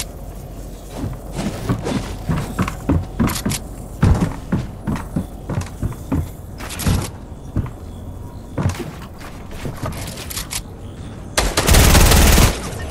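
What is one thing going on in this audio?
Gunshots fire in quick, sharp bursts.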